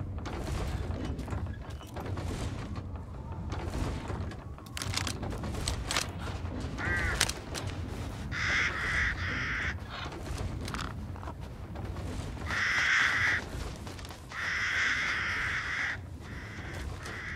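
Wind blows low and steady outdoors.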